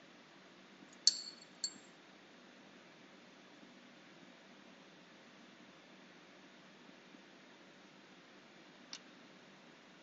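Glass clinks sharply against a hard surface a few times.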